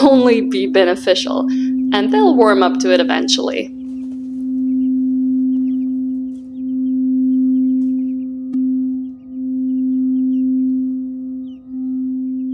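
A singing bowl hums with a steady ringing tone that swells and dips as it is rubbed.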